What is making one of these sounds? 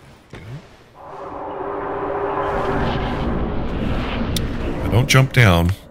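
A soft rushing whoosh swells and fades.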